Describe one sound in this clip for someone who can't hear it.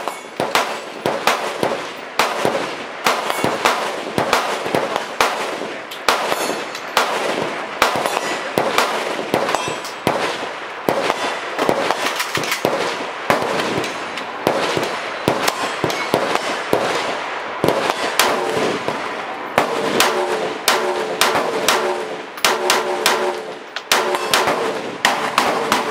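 Rifle shots crack sharply outdoors, one after another.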